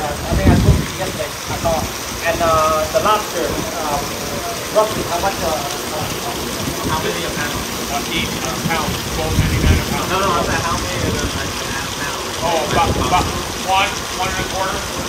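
Wind gusts outdoors into the microphone.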